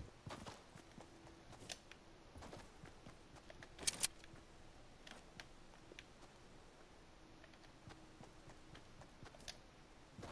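A game character's footsteps patter on grass.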